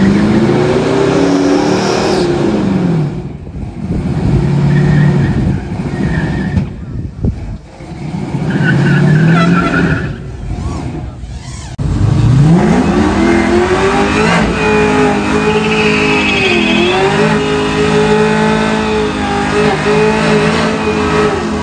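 Tyres squeal and spin on pavement.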